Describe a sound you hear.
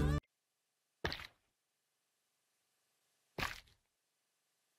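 A block is set down with a short, dull thud.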